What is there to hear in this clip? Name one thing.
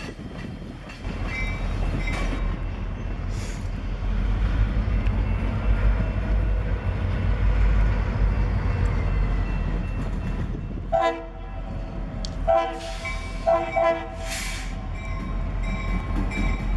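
A diesel locomotive engine rumbles deeply as it approaches.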